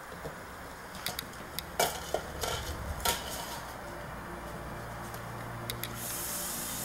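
A paper cup scrapes and rattles on a hard floor.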